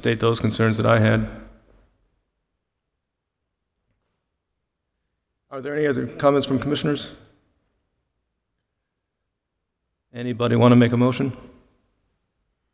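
A man speaks calmly into a microphone in short bursts, with pauses between them.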